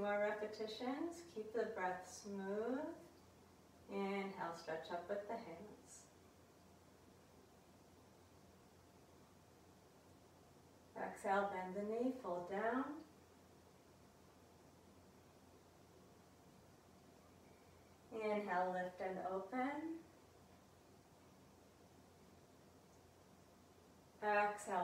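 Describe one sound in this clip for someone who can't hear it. A woman speaks calmly in short phrases, close to a microphone.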